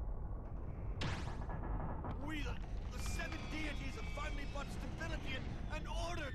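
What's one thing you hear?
Fire bursts and roars.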